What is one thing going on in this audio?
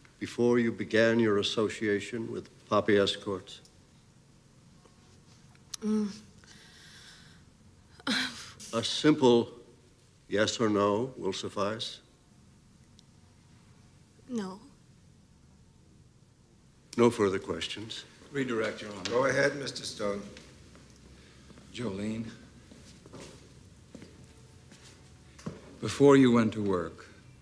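An elderly man speaks firmly and clearly nearby.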